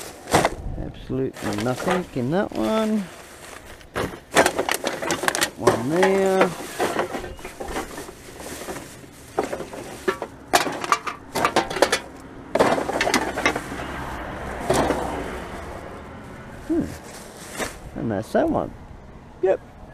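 Aluminium cans and plastic bottles clatter and rattle as they are tipped and sorted.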